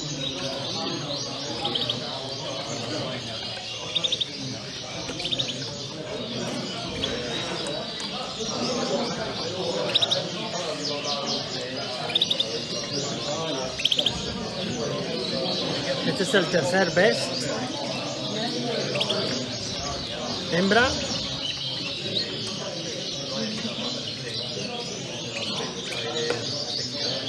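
Canaries chirp and trill all around.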